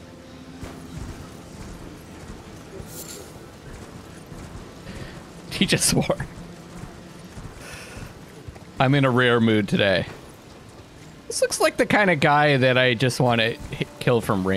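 A horse gallops over soft ground with thudding hoofbeats.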